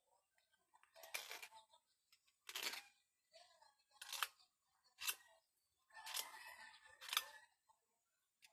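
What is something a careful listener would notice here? A knife scrapes at a plastic pipe fitting in short bursts.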